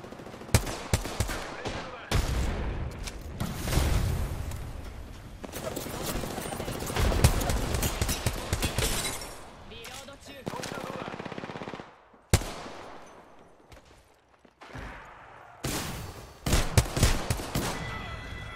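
Rapid gunfire cracks in bursts.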